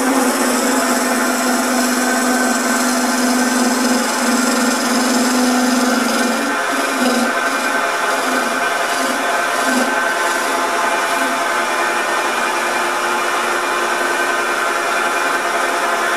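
A chisel scrapes and hisses against spinning wood.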